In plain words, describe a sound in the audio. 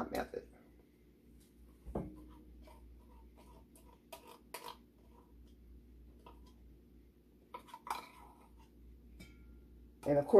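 A spoon scrapes the inside of a can.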